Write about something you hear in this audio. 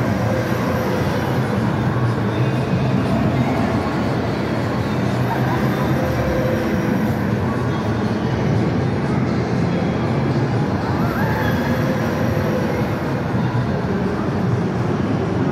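A ride car rumbles along an elevated track in a large echoing hall.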